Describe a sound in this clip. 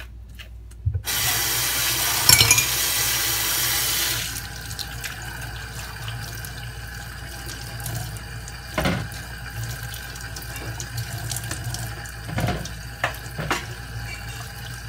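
Tap water runs and splashes into a metal sink.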